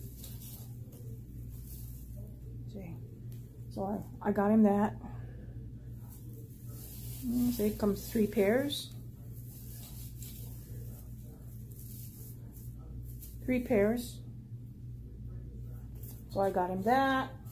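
Fabric rustles as a woman handles socks.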